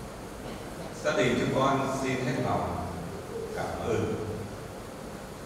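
An elderly man reads out through a microphone in a room with some echo.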